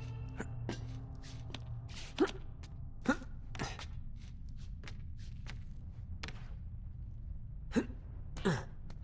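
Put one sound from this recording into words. A climber's hands grab and knock against wooden ledges.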